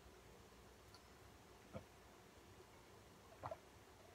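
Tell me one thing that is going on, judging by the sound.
A young man gulps down a drink.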